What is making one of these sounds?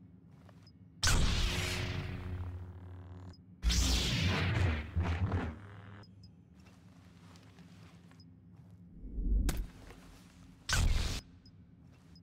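A lightsaber ignites with a loud crackling hum.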